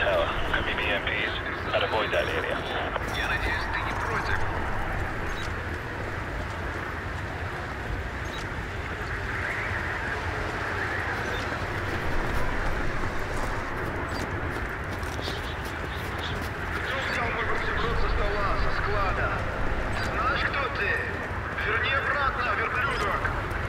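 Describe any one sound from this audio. Wind howls steadily through a blizzard outdoors.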